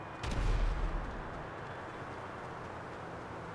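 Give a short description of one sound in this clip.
Footsteps run quickly over paving.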